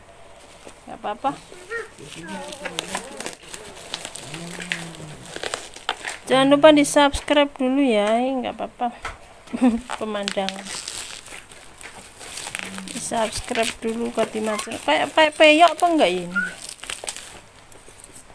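Plastic wrapping crinkles as hands handle a package.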